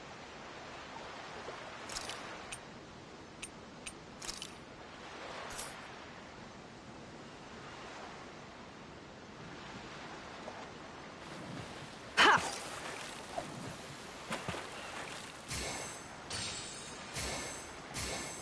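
Gentle waves lap against a wooden pier.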